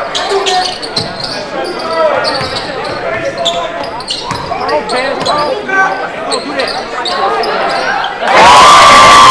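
A crowd murmurs and calls out in an echoing gym.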